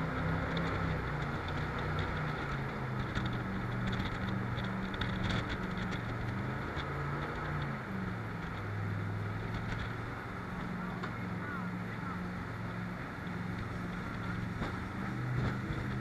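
A boat engine roars steadily, its pitch shifting up and down.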